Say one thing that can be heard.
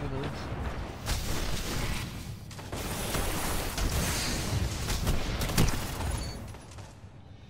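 Blasts roar and crackle in a video game.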